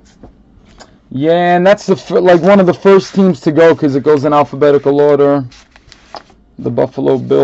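Foil card packs rustle and click as hands shuffle through them.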